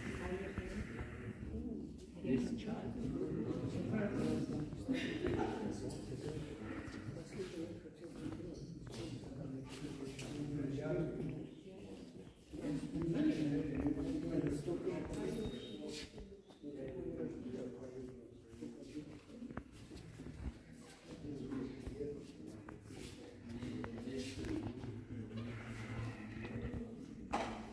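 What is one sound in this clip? A man speaks calmly and steadily nearby, with a slight echo.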